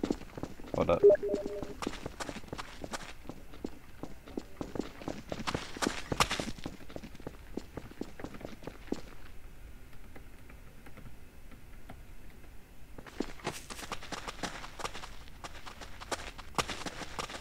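Footsteps clatter quickly over cobblestones.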